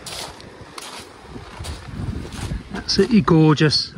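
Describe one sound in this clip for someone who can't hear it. Small waves wash gently onto a pebble shore.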